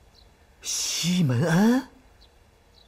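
A man speaks in a puzzled tone.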